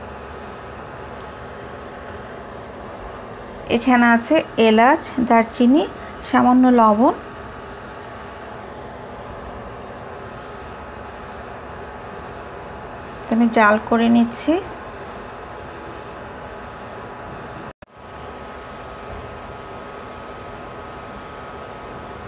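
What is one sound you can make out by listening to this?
Liquid sizzles gently in a pan.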